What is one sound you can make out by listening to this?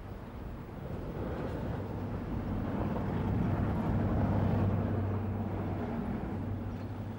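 A car engine hums and grows louder as it drives by.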